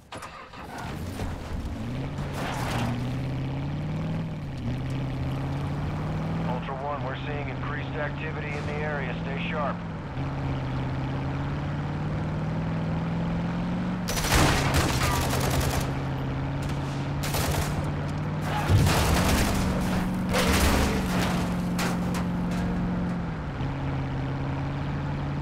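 Tyres rumble over a dirt road.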